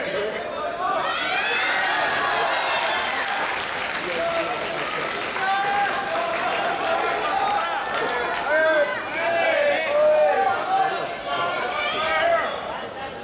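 A crowd roars and cheers loudly, then settles.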